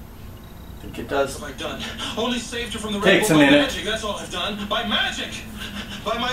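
A television's speaker plays a show's soundtrack in a room.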